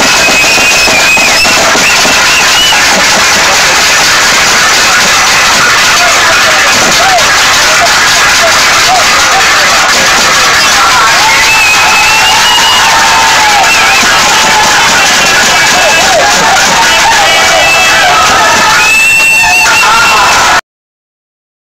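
Men sing loudly through distorted loudspeakers.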